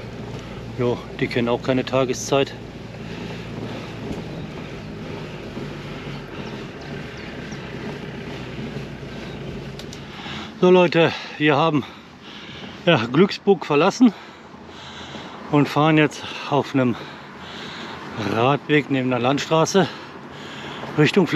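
Bicycle tyres roll steadily over a paved path.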